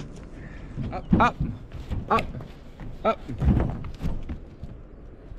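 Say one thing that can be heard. A dog's paws scrabble and thump on a car's metal roof.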